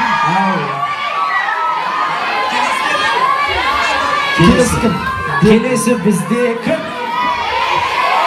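A crowd of young women screams and cheers loudly.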